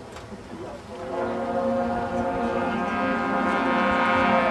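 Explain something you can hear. A marching band plays brass instruments together outdoors.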